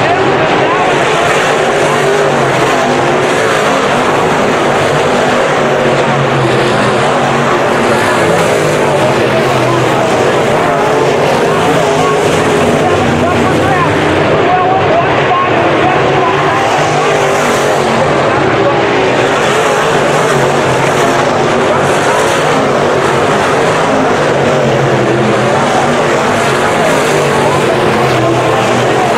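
Engines rev up and down as cars pass close by.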